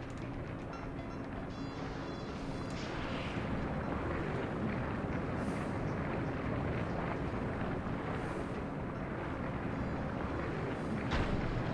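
Footsteps patter quickly as a game character runs.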